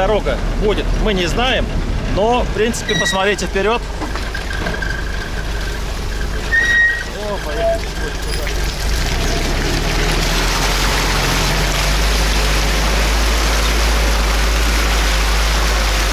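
An engine rumbles steadily.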